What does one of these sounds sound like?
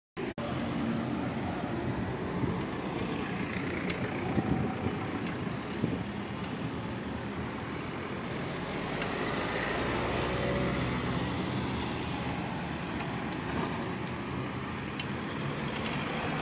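A car engine hums steadily with road noise.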